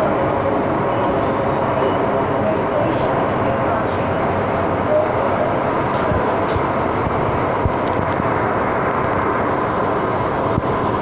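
A train rumbles and roars loudly along the track, with a steady hum inside the carriage.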